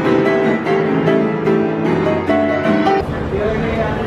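A piano plays a tune.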